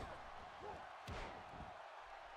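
A heavy body slams onto a wrestling ring mat with a thud.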